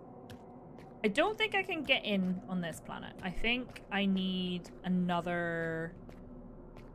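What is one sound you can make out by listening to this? A young woman speaks into a close microphone with animation.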